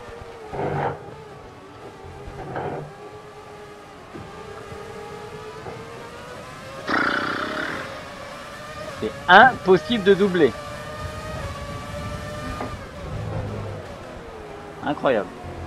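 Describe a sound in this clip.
A racing car engine whines loudly, rising and dropping in pitch as the gears shift.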